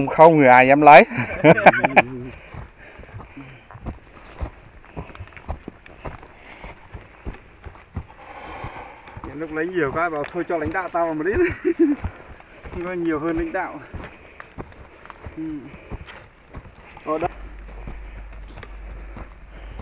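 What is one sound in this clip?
Footsteps crunch on dry soil and twigs while climbing a slope.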